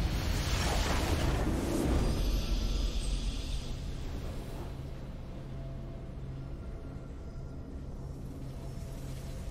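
A triumphant game victory chime rings out and settles.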